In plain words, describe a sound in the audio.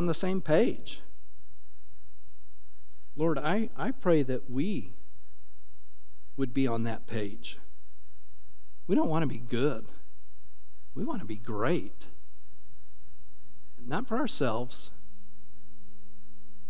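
A keyboard plays soft, sustained chords.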